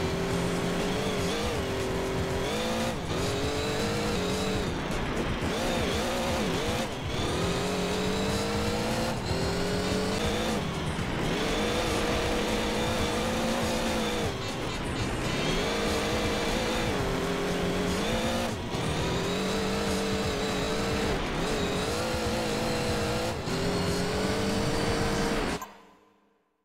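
Tyres crunch and skid on loose gravel.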